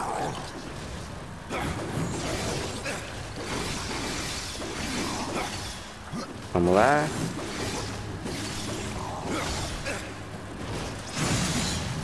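Creatures snarl and shriek.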